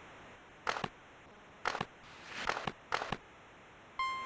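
Hockey sticks clack against a puck in short bursts.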